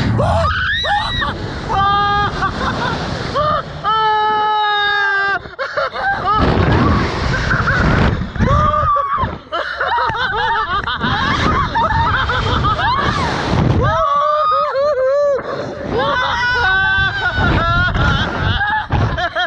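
A young man yells and laughs close to the microphone.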